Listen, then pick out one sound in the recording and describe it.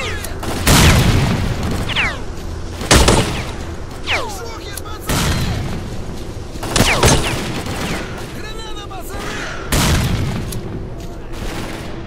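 Loud explosions boom one after another, each followed by a rumbling tail.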